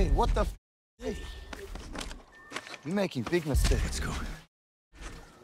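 A man talks outdoors.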